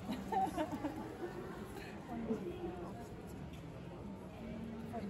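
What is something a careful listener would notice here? Young women laugh and chatter close by, outdoors.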